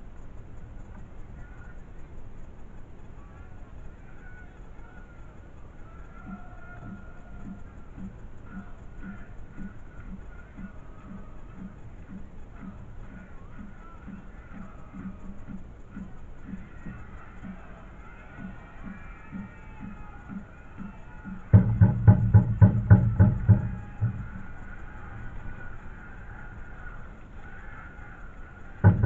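A corner flag flaps in the wind.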